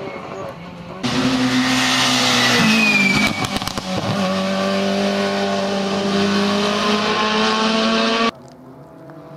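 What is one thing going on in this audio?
A rally car engine roars loudly past at high revs.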